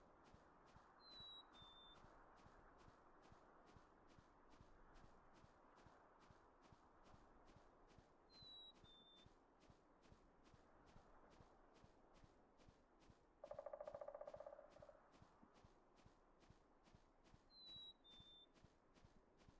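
Birds chirp briefly now and then.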